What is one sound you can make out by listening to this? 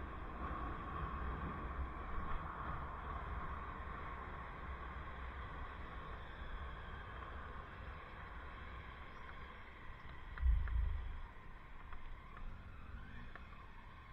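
Bicycle wheels hum on pavement.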